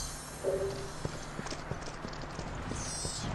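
Footsteps patter quickly on dry ground.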